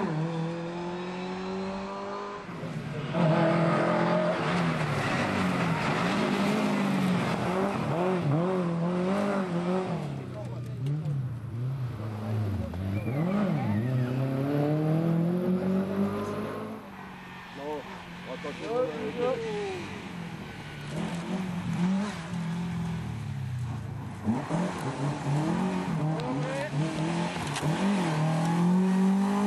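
A rally car engine roars and revs hard, rising and falling in pitch as gears change.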